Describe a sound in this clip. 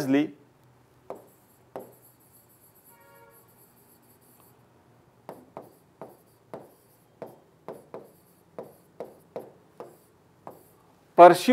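A marker squeaks and taps in short strokes on a whiteboard.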